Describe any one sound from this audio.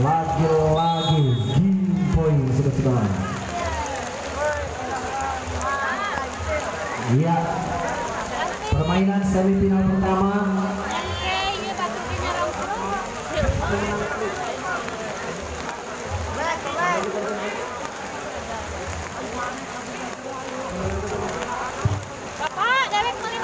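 Rain patters steadily on the ground.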